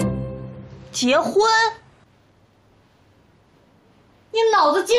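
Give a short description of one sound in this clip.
A young woman speaks with animation nearby.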